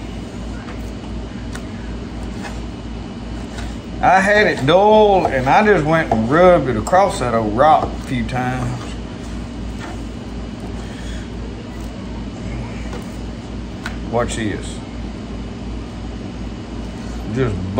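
A knife slices through meat on a wooden board.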